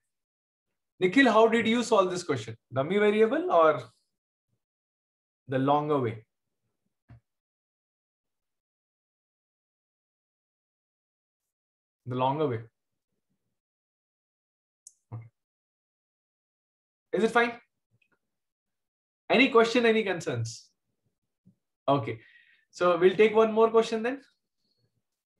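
A man speaks calmly through a microphone, in short phrases with pauses.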